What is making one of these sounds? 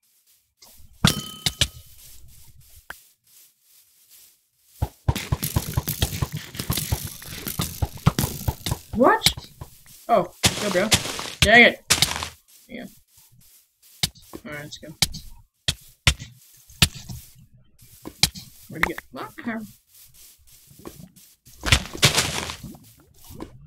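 Sword blows land with sharp hits.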